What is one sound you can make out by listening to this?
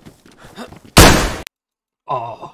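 A gunshot bangs sharply at close range.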